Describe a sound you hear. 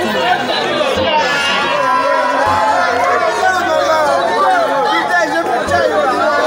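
A large crowd of men and women shouts and cheers excitedly, close by.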